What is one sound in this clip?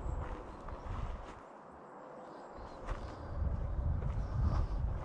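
Wind gusts outdoors and buffets loudly.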